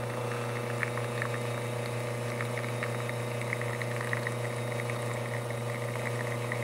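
Espresso trickles into a cup.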